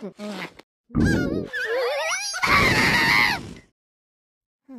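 A cartoon cat breathes out a loud, roaring burst of fire.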